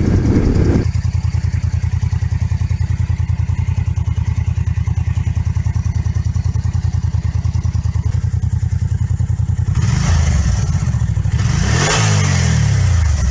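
A motorcycle engine idles with a steady, rapid throb.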